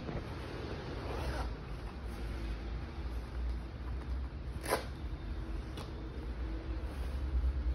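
Jacket fabric rustles.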